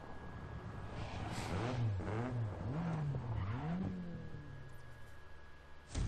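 A race car engine revs up and down repeatedly.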